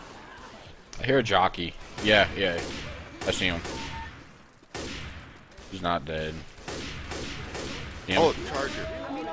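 Guns fire in sharp, loud shots.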